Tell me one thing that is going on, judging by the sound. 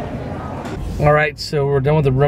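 A middle-aged man talks calmly close by.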